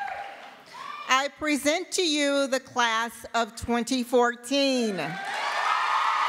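A young woman reads out through a microphone and loudspeaker in a large echoing hall.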